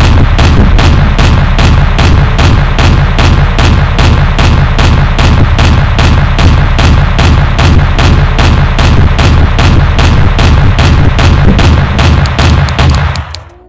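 Explosions boom now and then.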